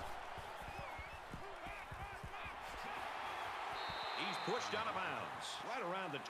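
Football players thud together in a tackle.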